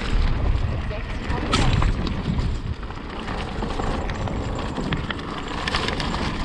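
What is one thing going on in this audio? A hardtail electric mountain bike rattles over roots on a dirt forest trail.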